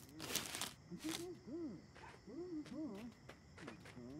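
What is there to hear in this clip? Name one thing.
Young fox cubs squeak and chirp in high yelps.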